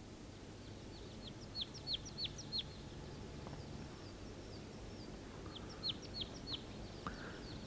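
A water bird gives short, high chirping calls.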